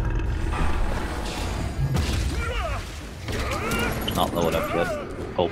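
Video game weapons and spells clash and burst in a busy battle.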